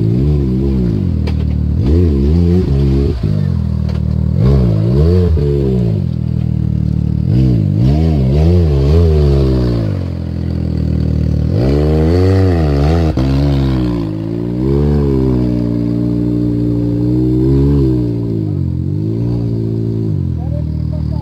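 An off-road buggy's engine revs hard nearby, rising and falling again and again.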